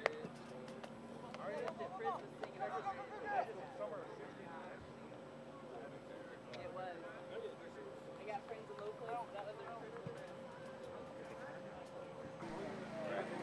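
A man talks loudly to a group nearby, outdoors.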